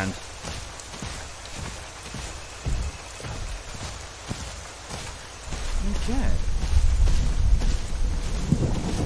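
Heavy footsteps thud on a forest floor.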